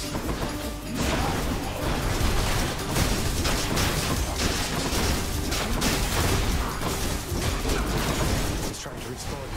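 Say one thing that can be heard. Magical blasts crackle and zap in quick bursts.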